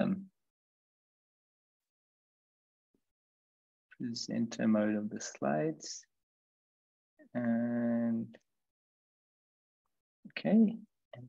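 A man speaks calmly in short phrases, close to a microphone, as if on an online call.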